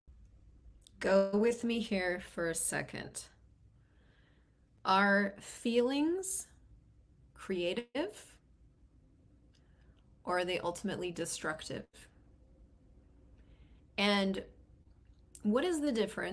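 A woman speaks with animation, close to a microphone, in short bursts with pauses.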